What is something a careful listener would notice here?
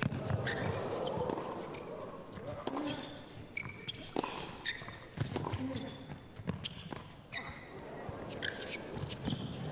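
A tennis ball is struck back and forth with sharp pops in an echoing arena.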